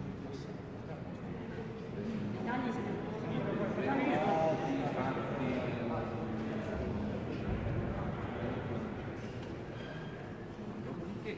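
A crowd of men and women talk over one another nearby.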